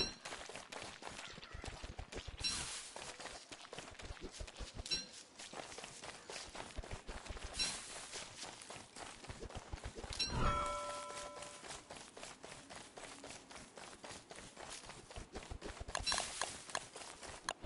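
Quick footsteps patter steadily across the ground.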